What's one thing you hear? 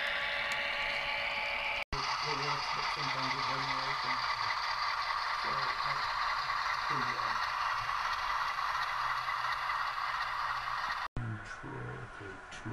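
Small electric train motors whir as model trains roll along the tracks.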